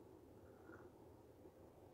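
A woman sips a drink from a cup.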